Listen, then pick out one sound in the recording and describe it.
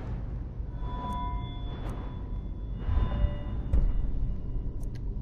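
Soft chimes ring as menu options are picked.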